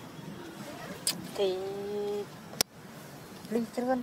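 A baby macaque whimpers and squeals.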